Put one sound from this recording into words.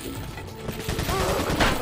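A pistol fires a loud shot that echoes briefly.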